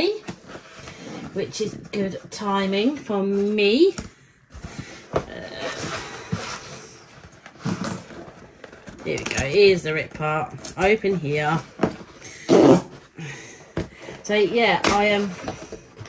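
Cardboard scrapes and thumps as a box is shifted on a wooden table.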